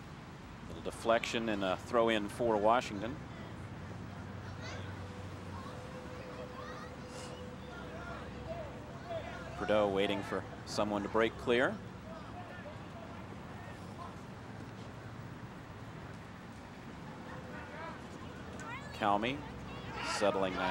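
Young men shout across an open field outdoors.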